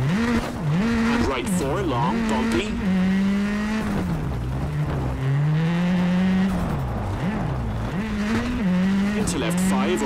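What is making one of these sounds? A rally car engine revs hard, rising and falling as it shifts gears.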